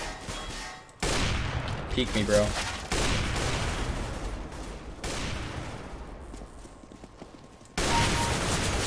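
A sniper rifle fires loud, booming shots.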